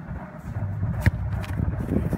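A boot kicks a football with a sharp thump.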